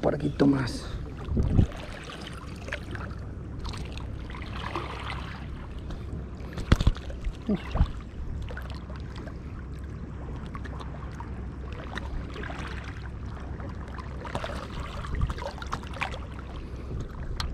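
Small waves lap gently against rocks at the water's edge.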